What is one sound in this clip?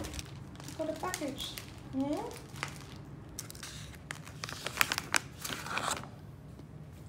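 A plastic bag crinkles and rustles in a hand.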